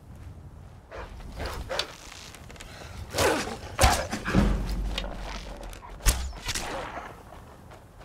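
A wolf snarls and growls close by.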